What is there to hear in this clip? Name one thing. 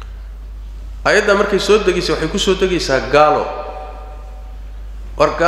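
A middle-aged man speaks with animation into a microphone in a room with a slight echo.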